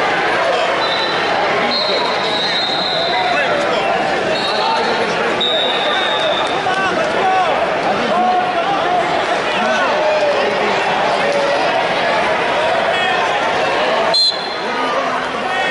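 A large crowd murmurs and calls out in an echoing arena.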